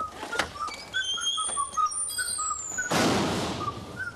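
A heavy door opens.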